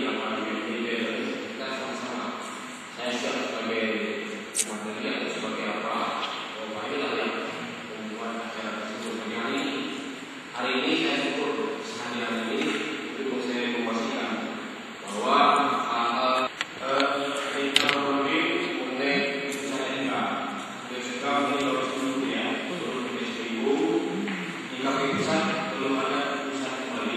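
A man speaks steadily and with animation into a microphone.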